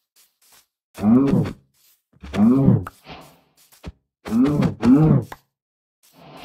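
A cow moos loudly several times.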